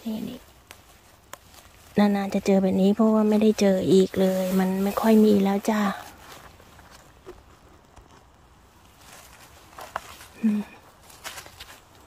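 Dry leaves rustle as a hand reaches into the forest floor.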